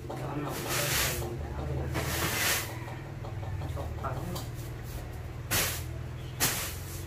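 Plastic-wrapped bundles rustle and shift close by.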